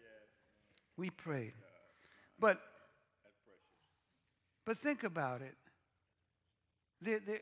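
A man speaks with animation through a microphone, in short bursts with pauses.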